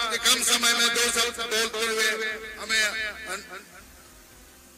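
A man speaks loudly through a loudspeaker.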